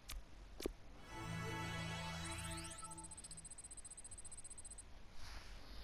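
Short electronic menu tones chime as options are picked.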